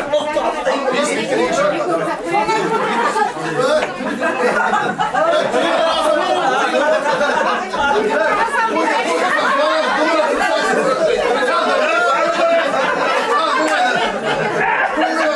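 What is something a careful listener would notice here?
A crowd of men and women chatter and talk over one another nearby.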